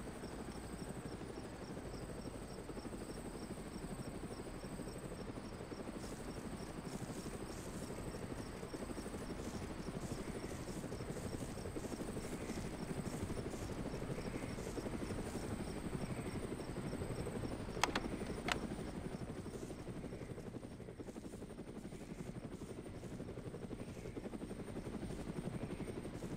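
Footsteps tramp steadily over grass.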